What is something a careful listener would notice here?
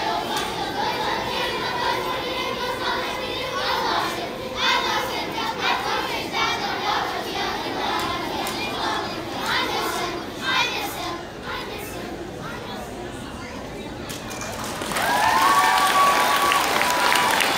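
A large children's choir sings together in an echoing hall.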